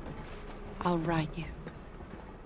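A woman speaks quietly, close by.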